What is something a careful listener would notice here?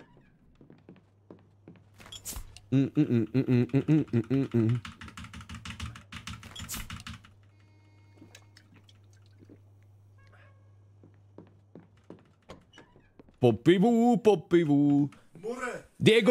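Footsteps tap on a floor.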